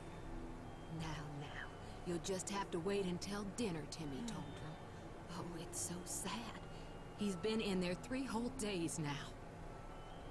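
An elderly woman speaks gently and soothingly.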